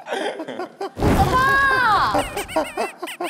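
A young woman cries out in surprise, asking a question.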